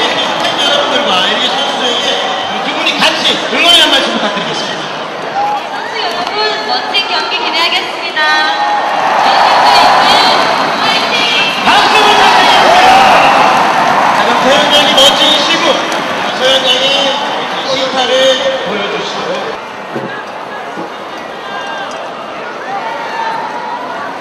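A large crowd cheers and chatters in an open stadium.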